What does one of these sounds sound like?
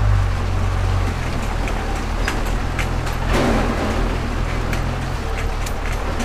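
A vehicle engine rumbles low and steady close by.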